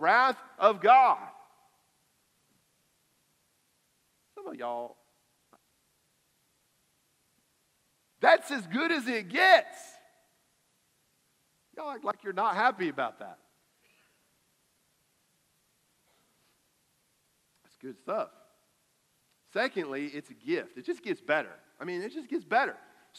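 A man speaks with animation through a microphone, in bursts with long pauses.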